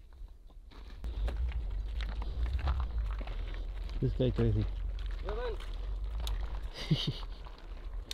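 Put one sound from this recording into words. Footsteps crunch on a hard, crusty ground.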